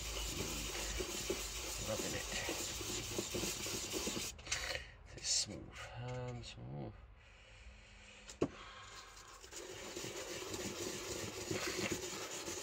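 A plastic part scrapes rhythmically against sandpaper.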